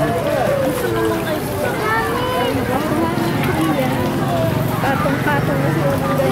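Fish splash and churn at the water's surface.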